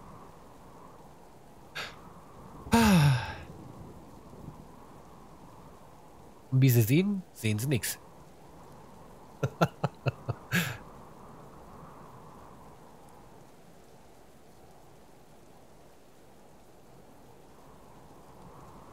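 Rain patters steadily on water.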